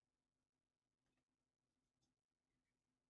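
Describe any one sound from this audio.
A stiff card rustles faintly as fingers handle it.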